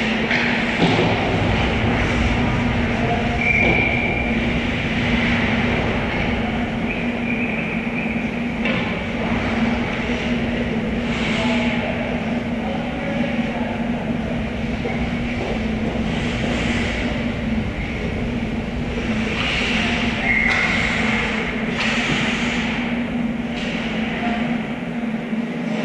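Skate blades scrape and hiss across the ice in a large echoing rink.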